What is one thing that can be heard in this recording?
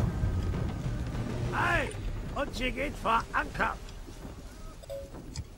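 Water rushes against the hull of a sailing ship.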